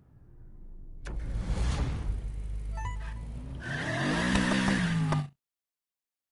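A car engine revs loudly.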